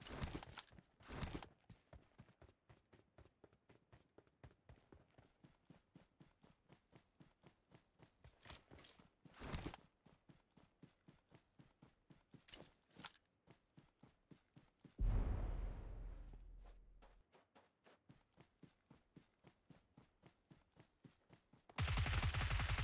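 Footsteps patter quickly and steadily on grass and dirt.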